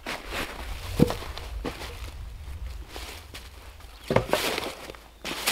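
A heavy log thuds and rolls on the ground.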